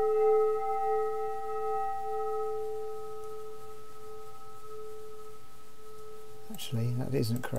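A steady electronic drone of layered tones hums and slowly fades.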